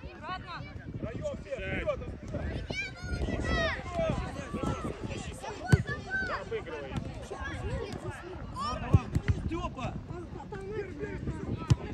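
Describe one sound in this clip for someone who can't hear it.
Young children shout and call out to each other across an open field.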